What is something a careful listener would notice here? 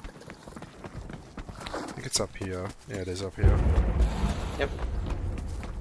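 Footsteps tread softly on a dirt path.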